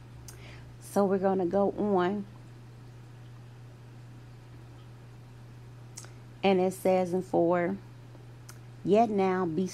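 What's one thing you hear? A woman speaks calmly into a microphone in short bursts.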